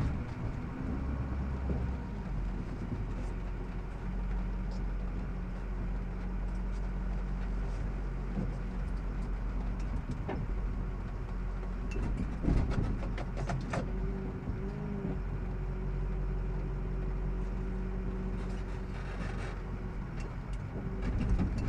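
A tow truck engine rumbles steadily while driving.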